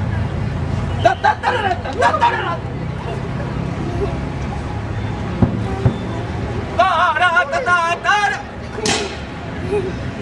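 A man shouts with animation nearby.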